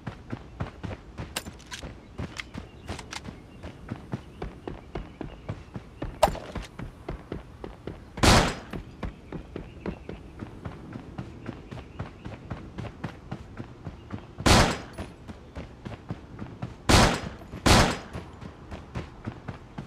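Footsteps patter quickly on grass and pavement.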